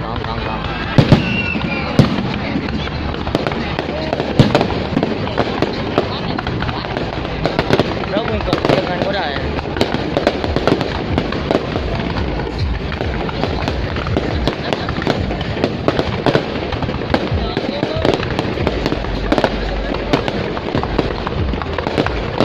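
Fireworks bang and crackle loudly in quick bursts.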